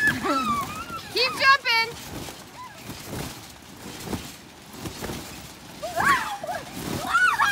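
Young girls squeal and shriek with excitement close by.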